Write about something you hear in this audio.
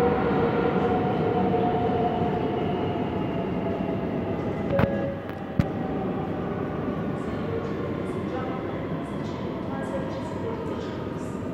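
A subway train rumbles along the rails and slows down.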